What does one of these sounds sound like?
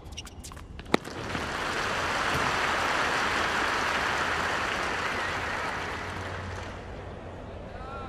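A large crowd applauds and cheers in a stadium.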